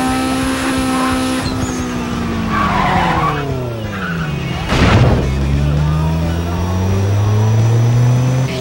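A car engine roars loudly, dropping in pitch as the car slows, then climbing again as it speeds up.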